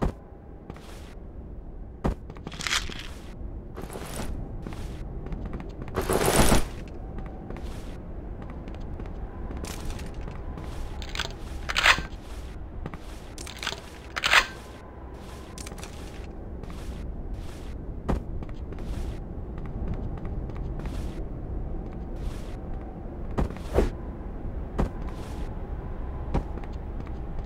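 Footsteps thud at a steady walking pace.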